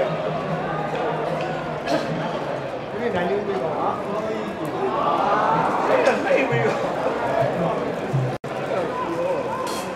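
A crowd murmurs and chants in an open stadium.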